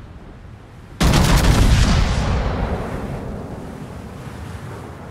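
Big naval guns fire with a deep, booming blast that rumbles away.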